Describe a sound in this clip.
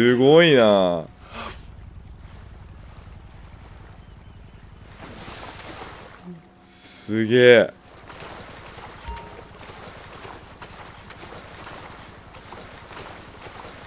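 Water splashes as a swimmer strokes through waves.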